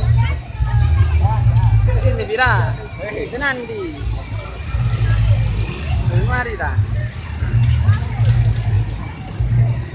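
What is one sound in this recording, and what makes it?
Motor scooters idle and creep along.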